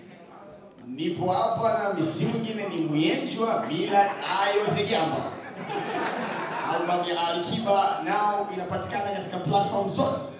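A man speaks calmly into a microphone over loudspeakers in a large room.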